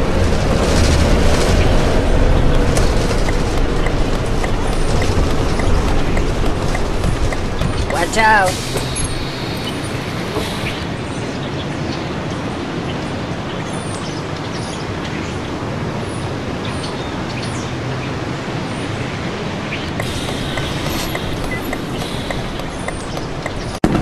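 A bus engine rumbles steadily as the bus drives, then quiets to an idle.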